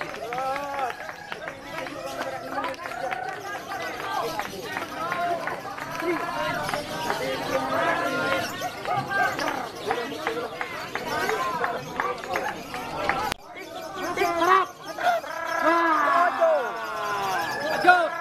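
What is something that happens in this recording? A lovebird chirps and twitters rapidly and shrilly, close by.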